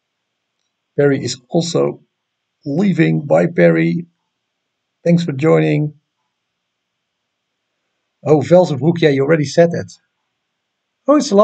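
A man speaks calmly into a nearby microphone, in short phrases with pauses.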